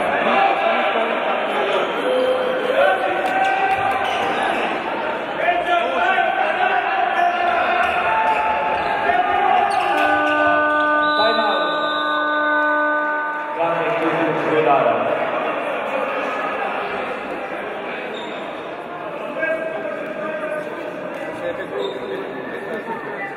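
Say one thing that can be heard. A crowd chants loudly in a large echoing hall.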